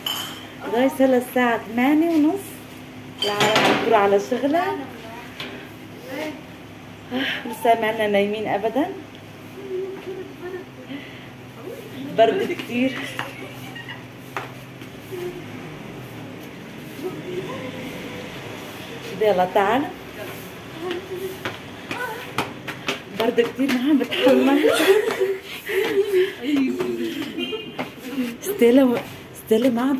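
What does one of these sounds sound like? Young girls talk and laugh excitedly close by.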